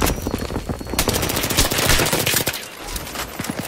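A submachine gun fires in bursts.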